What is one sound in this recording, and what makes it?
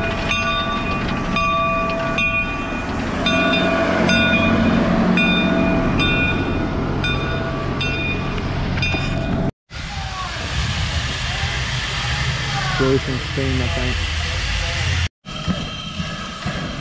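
A steam locomotive hisses.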